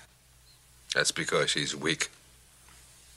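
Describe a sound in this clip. Another middle-aged man speaks calmly in a low voice.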